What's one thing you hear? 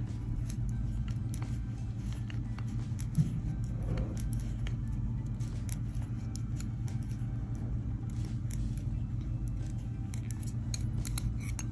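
Metal knitting needles click softly against each other.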